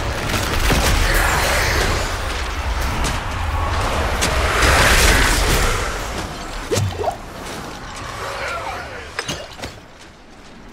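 Sharp hits and clangs ring out.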